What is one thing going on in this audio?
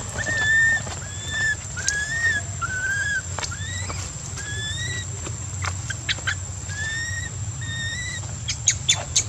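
A baby monkey squeaks in short, high cries, again and again.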